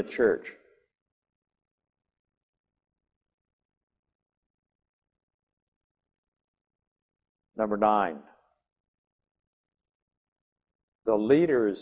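An elderly man speaks calmly through a microphone, with long pauses.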